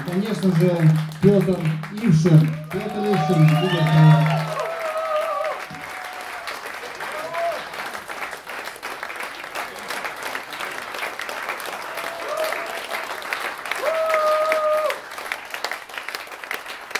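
Many hands clap in steady applause.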